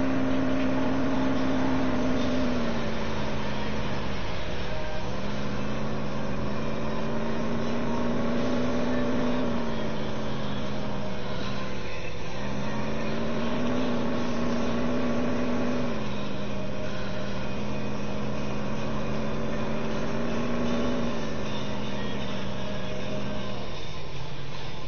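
A car engine hums and rises and falls in pitch as the car speeds up and slows down.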